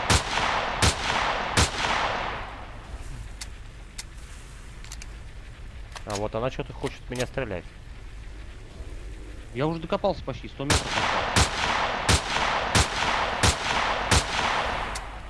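Rifle shots crack loudly, each followed by a rolling echo.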